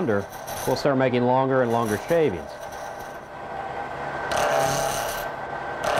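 A lathe spins with a steady whine.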